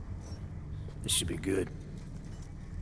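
A second man answers briefly in a low voice.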